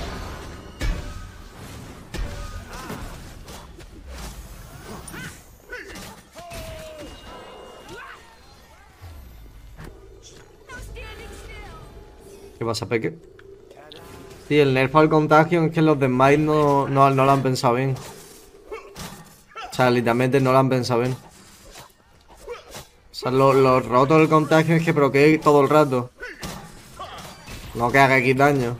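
Game combat effects clash and whoosh.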